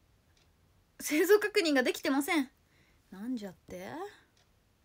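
A young woman speaks close up in a bright, lively voice.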